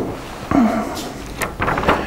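An elderly man speaks calmly in a slightly echoing room.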